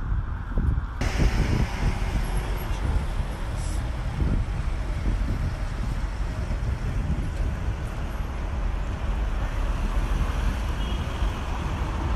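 Car traffic rumbles past on a busy street outdoors.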